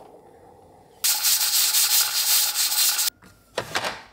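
A pressure cooker hisses loudly as steam escapes.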